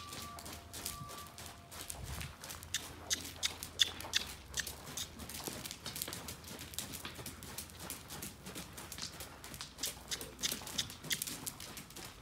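A horse's hooves thud softly and rhythmically on soft sand.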